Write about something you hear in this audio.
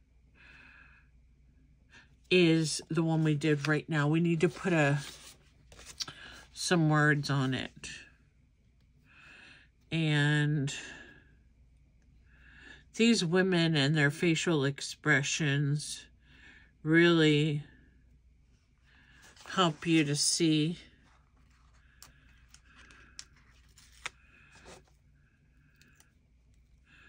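Paper cards rustle and slide as hands handle them.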